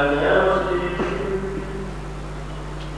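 A man sings slowly through a microphone.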